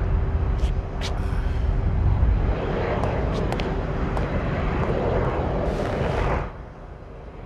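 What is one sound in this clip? A man calls out from a distance.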